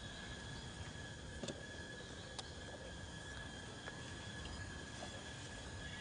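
A monkey rustles through grass and dry leaves on the ground.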